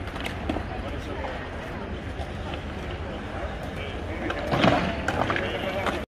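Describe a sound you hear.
A crowd of people chatters in a large open square outdoors.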